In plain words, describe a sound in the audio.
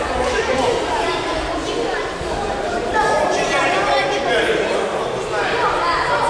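A crowd of children chatters loudly in a large echoing hall.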